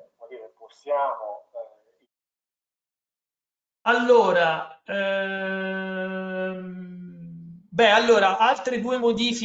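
A man speaks calmly through an online call, pausing now and then.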